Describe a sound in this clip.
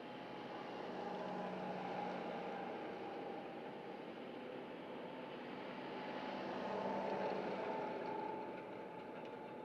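A tractor engine rumbles as it drives past, then fades away.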